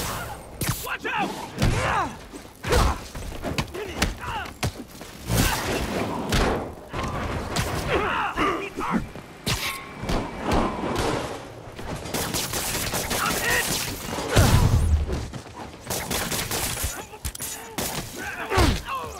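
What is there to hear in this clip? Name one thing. Men shout during a fight.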